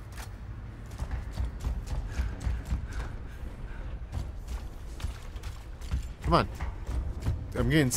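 Heavy armoured footsteps thud and clank on a stone floor.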